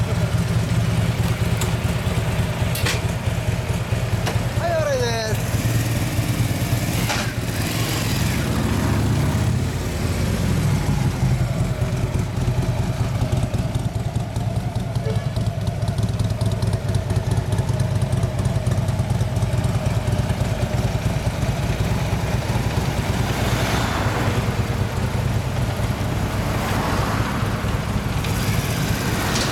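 A parallel-twin cruiser motorcycle idles.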